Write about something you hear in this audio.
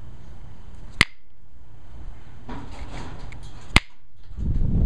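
Small flakes of stone snap off with sharp clicks.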